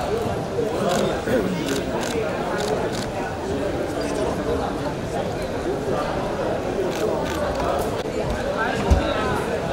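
A crowd murmurs and chatters in a large room.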